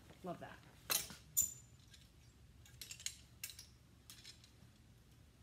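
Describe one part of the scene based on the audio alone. Clothes hangers clack and scrape along a metal rail.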